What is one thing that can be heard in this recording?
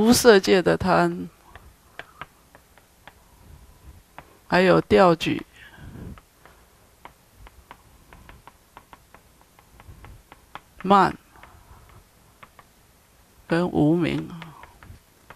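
An elderly man speaks calmly through a headset microphone, in short bursts with pauses.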